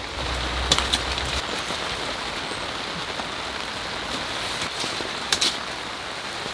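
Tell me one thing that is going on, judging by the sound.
A plastic clip snaps shut with a sharp click.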